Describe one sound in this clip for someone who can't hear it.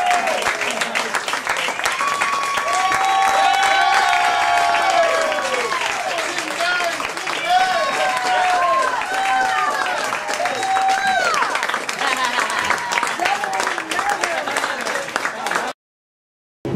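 A lively crowd cheers and whoops loudly.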